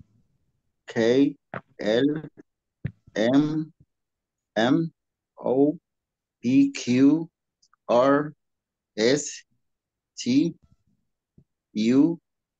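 A young man speaks slowly and clearly through an online call, naming letters one at a time with pauses.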